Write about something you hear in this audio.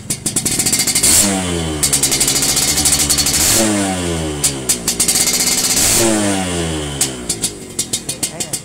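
A motorcycle engine revs up hard three times and falls back each time.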